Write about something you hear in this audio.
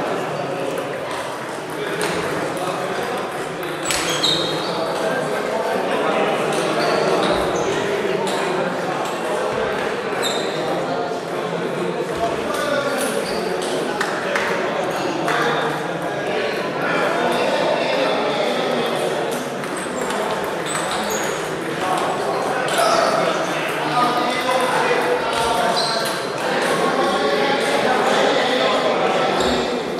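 Ping-pong balls click on tables and bats, echoing in a large hall.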